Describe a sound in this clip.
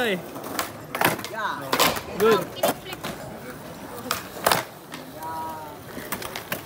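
A skateboard clacks sharply against the ground.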